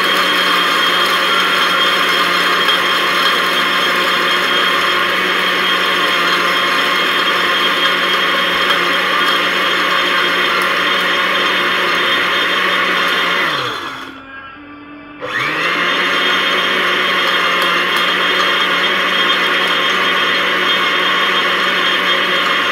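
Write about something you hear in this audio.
An electric grinder motor whirs loudly and steadily, briefly winding down and then starting up again.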